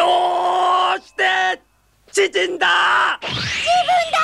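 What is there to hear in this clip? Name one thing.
A young boy wails and shouts.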